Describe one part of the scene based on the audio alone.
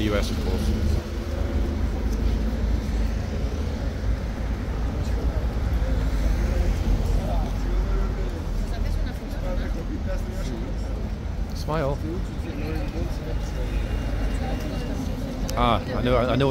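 Young women talk and laugh nearby, outdoors.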